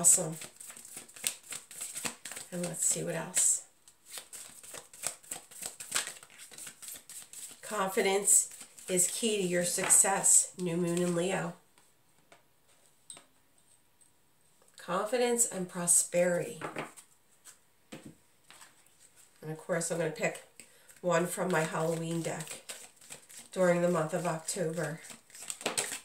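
Cards flick and rustle as they are shuffled by hand.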